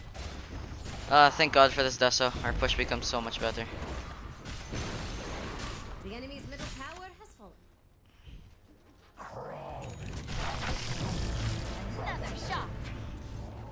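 Swords clash and strike in combat.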